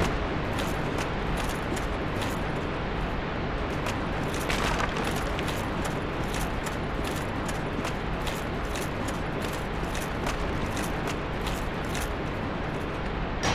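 Armored footsteps clank steadily over stony ground.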